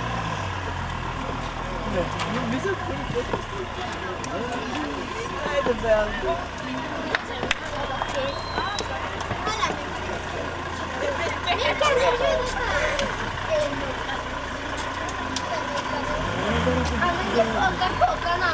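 Voices of people chatter outdoors in the distance.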